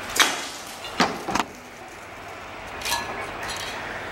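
A metal pipe knocks and clatters as it is handled.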